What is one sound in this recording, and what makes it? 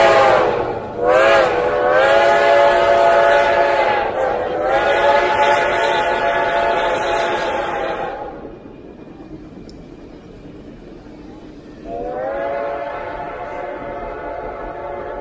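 A steam locomotive's whistle blows loudly in long blasts.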